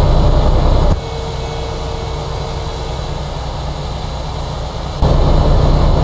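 A truck engine hums more softly from outside.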